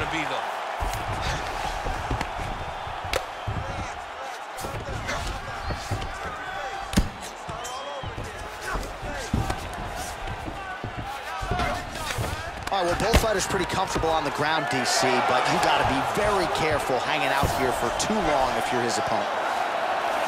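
Punches thud against a body in quick bursts.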